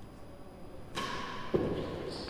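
A racket strikes a ball with a sharp crack in an echoing hall.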